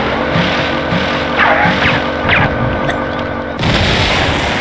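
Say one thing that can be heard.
A motorboat engine drones steadily.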